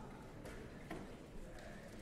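Footsteps cross a stage in a large echoing hall.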